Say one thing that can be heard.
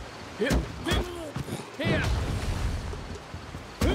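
A burst of flame whooshes.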